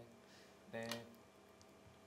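A stone clicks down onto a wooden game board.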